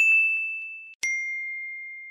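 A small bell chimes brightly and rings out.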